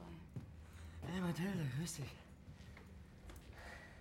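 A man speaks up briefly from across the room.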